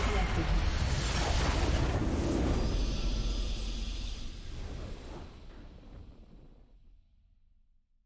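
A triumphant game fanfare booms out and slowly fades away.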